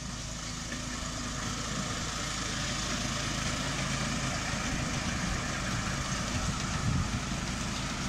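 A miniature steam train rumbles along its track, growing louder as it approaches.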